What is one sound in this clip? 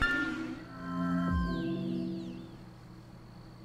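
Bright magical chimes ring out and fade.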